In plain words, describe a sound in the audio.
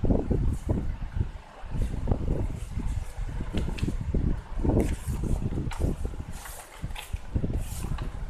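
A hand brushes and bumps against the pages close up.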